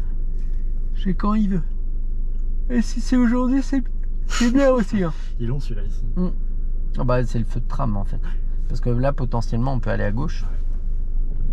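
A passenger talks close by with animation.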